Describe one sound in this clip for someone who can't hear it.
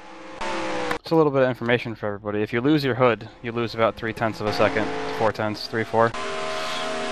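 Stock cars roar past at speed.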